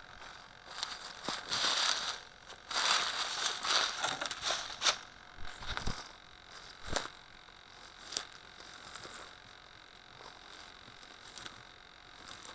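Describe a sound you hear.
Dry grass and twigs rustle and scrape against a small toy car.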